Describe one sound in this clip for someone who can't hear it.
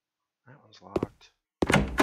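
A locked door handle rattles.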